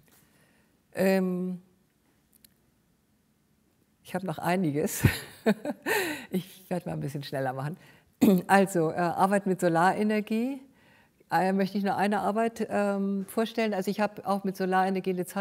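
A middle-aged woman speaks calmly through a microphone, now and then laughing.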